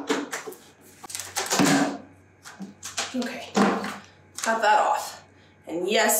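A plastic lid pops off a paint bucket.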